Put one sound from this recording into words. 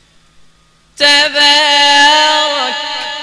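A man chants loudly through a loudspeaker in a large hall.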